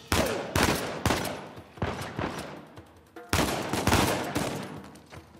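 A pistol fires repeated shots that echo loudly.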